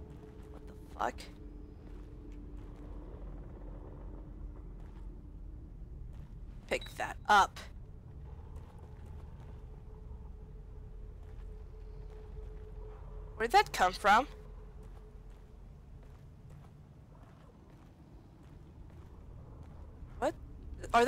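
A young woman exclaims in short bursts, close to a microphone.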